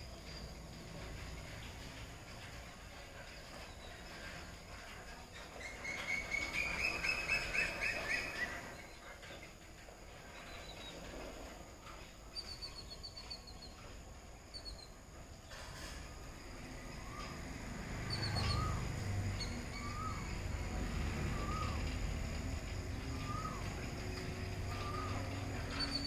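A motorised sliding gate hums and rumbles as it rolls slowly shut.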